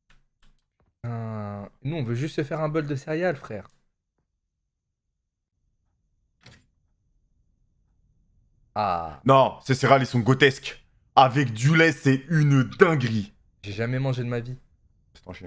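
Young men talk with animation into a microphone, close by.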